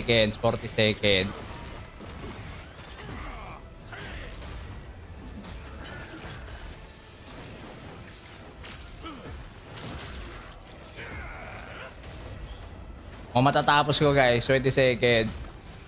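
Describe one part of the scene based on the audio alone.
Magic blasts and weapon strikes crash and whoosh in a fast-paced fight.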